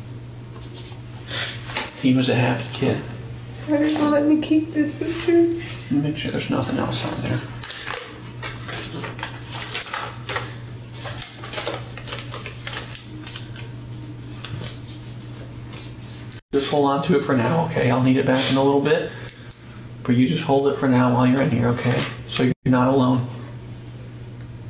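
A man speaks calmly in a small room, heard through a ceiling microphone.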